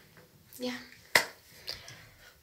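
Hands clap a few times.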